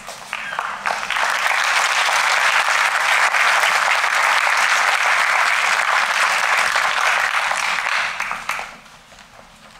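A crowd applauds loudly in a large hall, then the clapping dies away.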